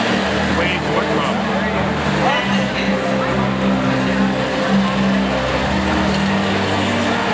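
Robots whir and bump as they move around the arena.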